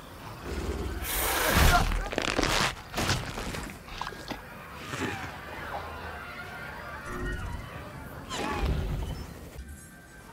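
A dinosaur roars loudly and growls.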